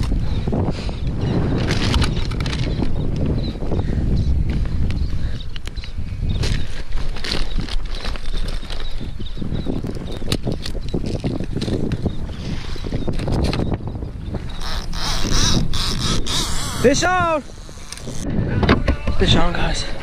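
Wind blows across the microphone outdoors on open water.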